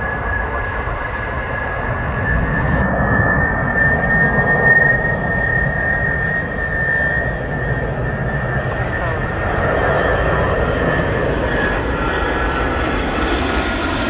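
A jet airliner's engines whine and roar loudly overhead as it passes close by.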